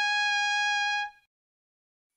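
A short electronic tone beeps.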